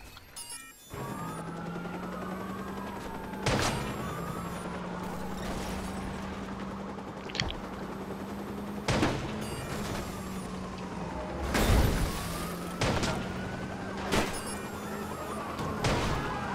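A van engine hums steadily as it drives fast.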